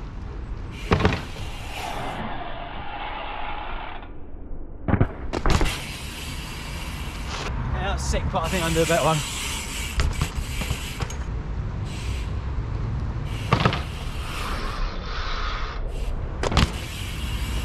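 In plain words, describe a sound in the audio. A bicycle lands with a sharp clatter.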